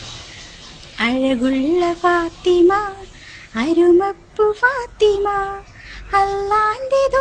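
A young girl sings close by.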